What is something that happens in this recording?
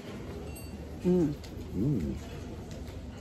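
A woman hums with pleasure.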